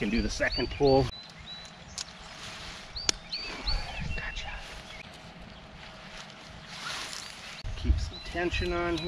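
Nylon tent fabric rustles and swishes as it is handled.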